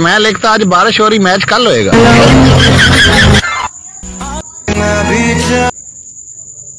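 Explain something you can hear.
A woman sings along with music.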